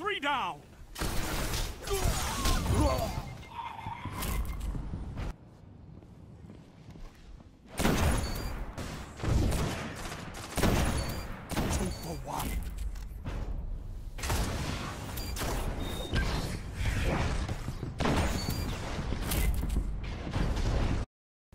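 Rifle shots ring out in bursts.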